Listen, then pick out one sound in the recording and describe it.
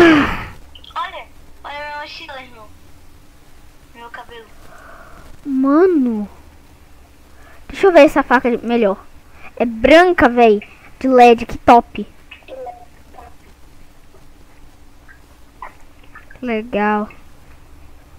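A young boy talks with animation into a headset microphone.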